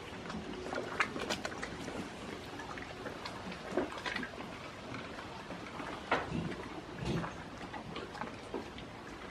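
A goat chews noisily close by.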